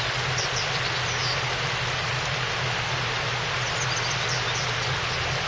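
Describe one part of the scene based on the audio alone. A shallow river flows steadily over rocks outdoors.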